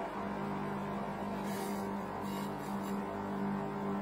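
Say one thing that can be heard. A metal spatula scrapes across a cold metal plate.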